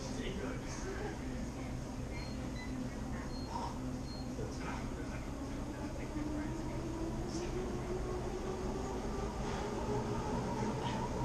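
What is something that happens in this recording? Exercise machines whir and hum steadily.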